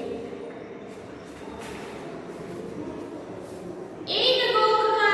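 A young woman speaks calmly, close by, reading out.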